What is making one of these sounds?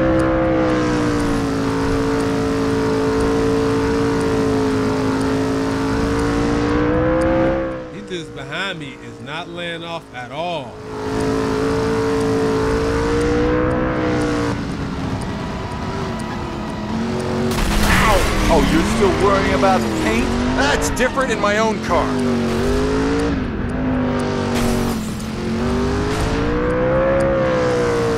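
A car engine roars steadily at high speed, rising and falling in pitch.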